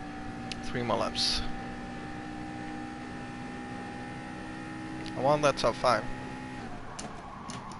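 A racing car engine roars at high, steady speed.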